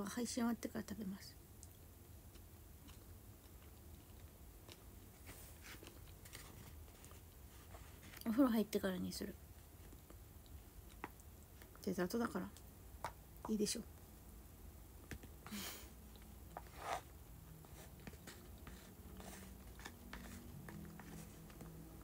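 A young woman chews and slurps food close by.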